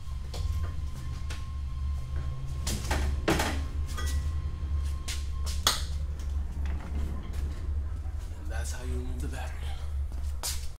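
Metal clanks and scrapes as a heavy metal case is moved on a cart.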